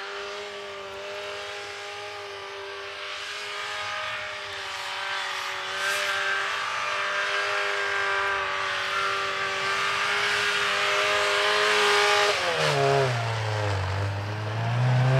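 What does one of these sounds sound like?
A car engine revs steadily, rising and falling in pitch.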